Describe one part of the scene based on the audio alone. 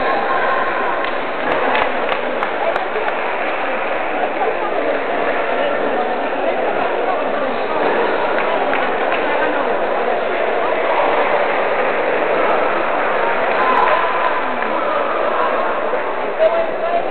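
Ping-pong balls click on tables throughout a large echoing hall.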